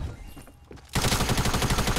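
Rapid gunshots fire.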